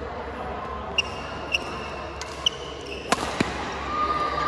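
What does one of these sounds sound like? Rackets hit a shuttlecock with sharp pops.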